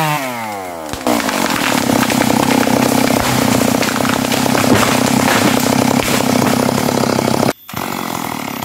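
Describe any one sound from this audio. A tree cracks and crashes down through leaves and branches.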